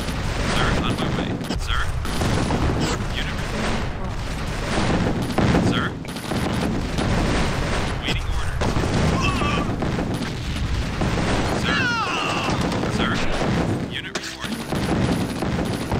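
Gunfire and explosions rattle and boom in a game battle.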